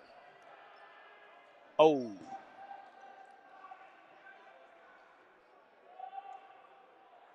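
Young men call out faintly across a large echoing gym.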